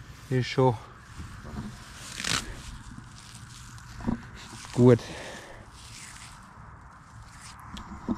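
Grass rustles and tears as a hand pulls it.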